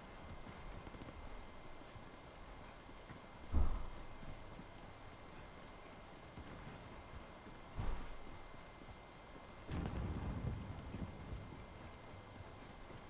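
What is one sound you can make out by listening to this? Boots thud quickly on hard ground as a soldier runs.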